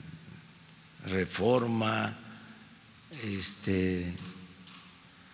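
An elderly man speaks slowly and deliberately into a microphone, with pauses.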